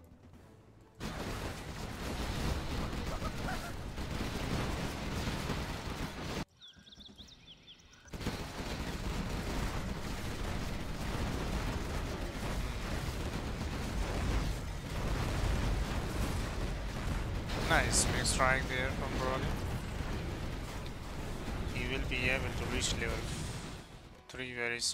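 Laser guns zap and crackle.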